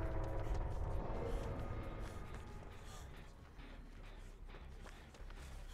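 Footsteps run over leaves and earth.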